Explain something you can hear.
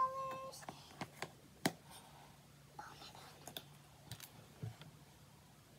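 A cardboard palette case knocks and taps.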